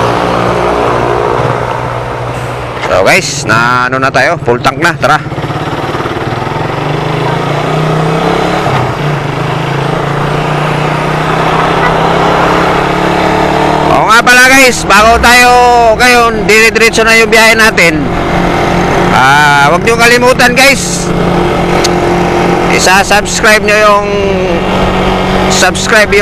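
A motorcycle engine idles and then revs hard, rising and falling in pitch through the gears.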